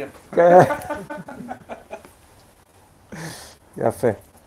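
An elderly man laughs heartily close by.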